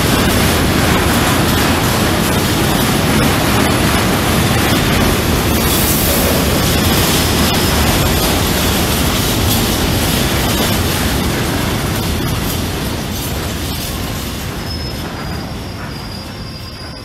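A long container freight train rolls past close by, and the roar of its wheels slowly fades.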